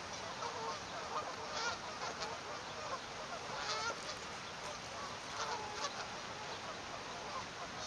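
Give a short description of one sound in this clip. A swan shifts on a nest of dry reeds, rustling them softly.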